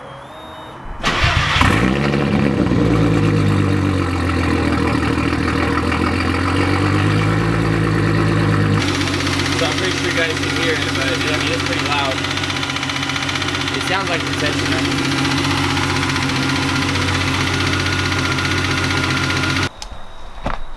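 A car engine idles loudly and revs up and down.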